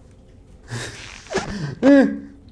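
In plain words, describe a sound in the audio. A second young man exclaims and laughs, close to a microphone.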